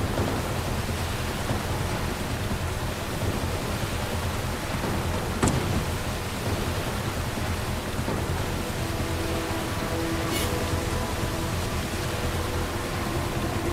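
A jet ski engine roars steadily while speeding through water.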